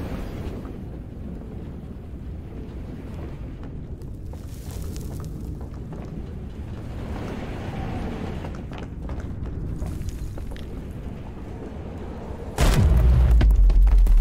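Small footsteps patter on a hard floor.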